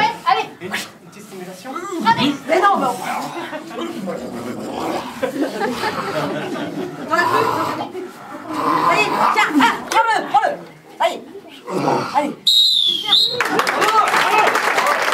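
Young men and women shout and cheer excitedly nearby.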